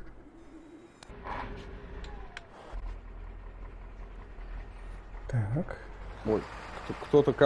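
A truck engine starts and idles with a low, steady rumble.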